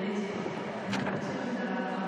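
A gymnast's feet strike a springboard with a loud thump.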